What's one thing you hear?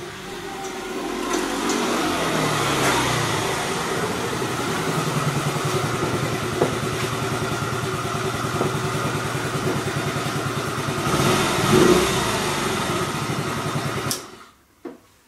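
A scooter engine hums as it rides up close and idles.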